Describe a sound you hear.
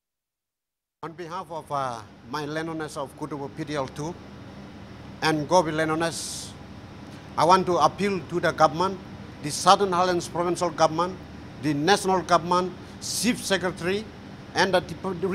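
A middle-aged man speaks with animation into a handheld microphone.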